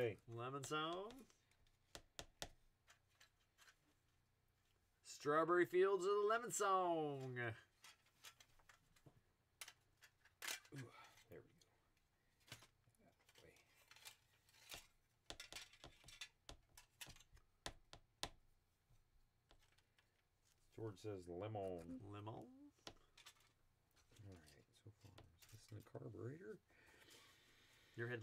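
Small tools click and tap on a workbench.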